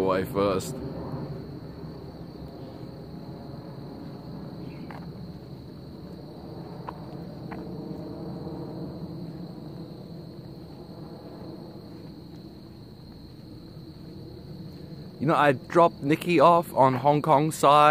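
Footsteps tap softly on a paved path.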